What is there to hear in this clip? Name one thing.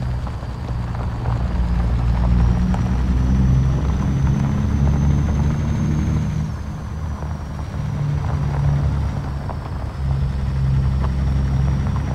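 An inline-six diesel semi truck engine pulls at low speed.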